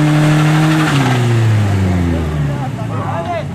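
A car engine's roar drops quickly as the revs fall.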